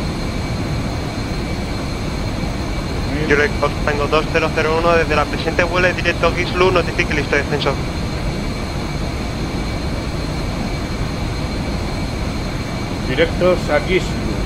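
A jet engine drones steadily inside an aircraft cabin.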